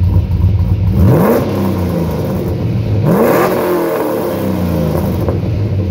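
A car engine revs up sharply and drops back, twice.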